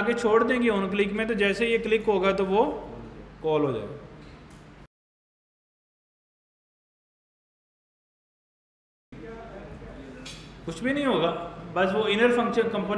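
A young man speaks with animation close to a microphone, with pauses.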